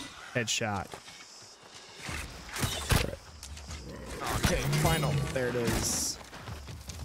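A wild boar squeals and grunts loudly.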